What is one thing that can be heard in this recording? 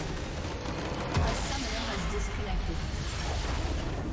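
A structure shatters with a loud, ringing crash.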